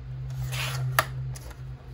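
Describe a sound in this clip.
A trimmer blade snaps with a sharp click.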